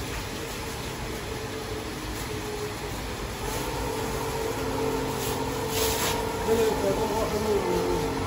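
Raw meat thuds into a large metal pot.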